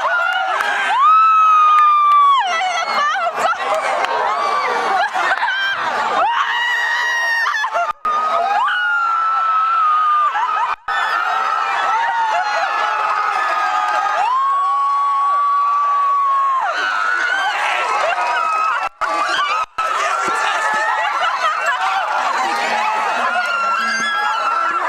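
Young men and women close by shriek and yell with excitement.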